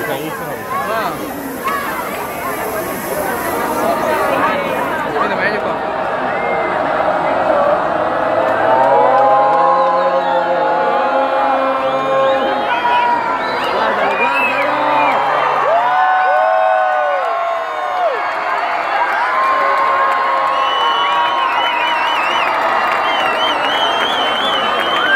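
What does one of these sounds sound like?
A large crowd cheers and sings loudly outdoors.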